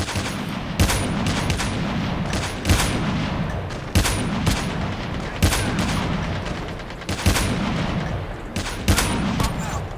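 A sniper rifle fires loud single shots at a steady pace.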